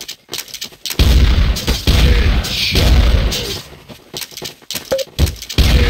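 A shotgun fires loud booming blasts.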